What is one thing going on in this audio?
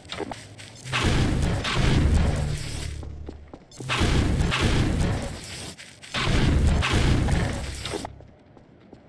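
A game's gravity gun launches objects with loud whooshing blasts.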